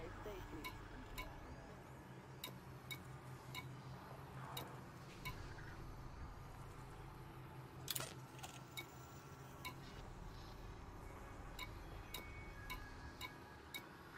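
Short electronic clicks tick as a menu selection moves from item to item.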